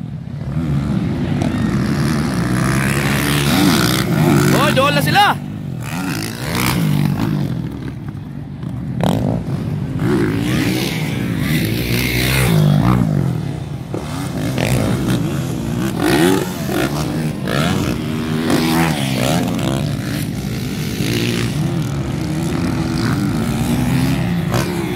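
Motocross bike engines rev and whine loudly, rising and falling as riders race past and jump.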